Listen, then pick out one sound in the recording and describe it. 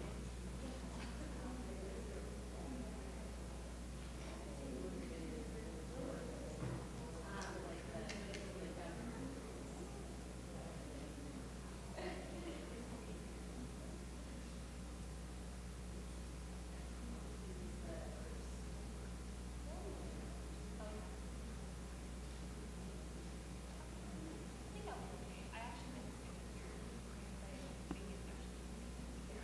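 Footsteps tap across a hard floor.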